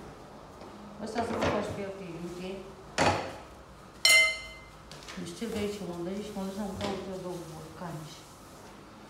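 A second woman talks calmly nearby.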